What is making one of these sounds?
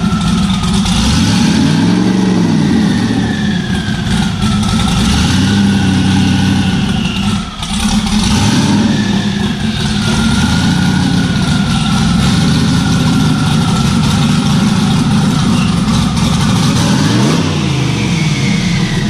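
A car engine revs up and falls back several times.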